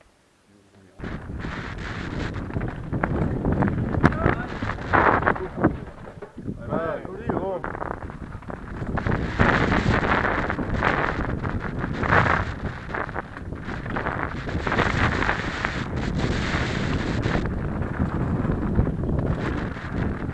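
Wind buffets loudly against a moving rider.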